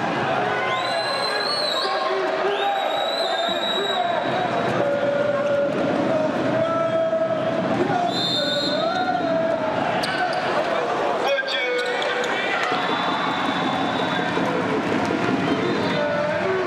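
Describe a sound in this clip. A large crowd chants and cheers in a big echoing hall.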